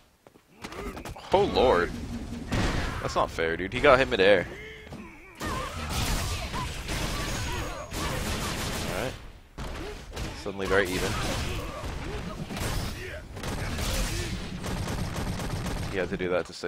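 Punches and kicks land with heavy, smacking thuds.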